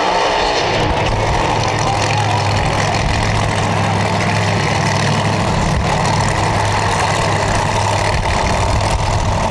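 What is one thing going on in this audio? A race car engine idles with a deep, steady rumble.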